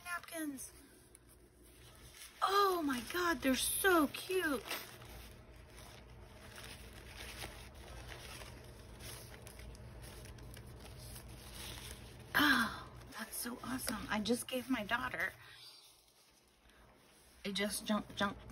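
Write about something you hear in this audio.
Paper rustles and crinkles as it is unfolded and handled.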